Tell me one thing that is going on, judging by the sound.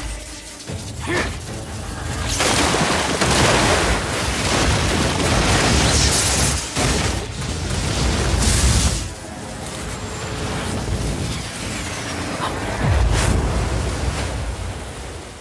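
Electricity crackles and snaps in loud bursts.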